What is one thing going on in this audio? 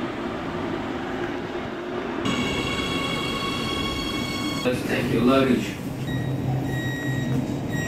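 A subway train rumbles along the track.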